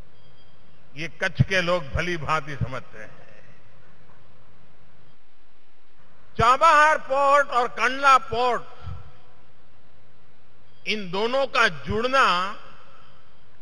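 An elderly man gives a speech with emphasis through a microphone and loudspeakers, pausing between phrases.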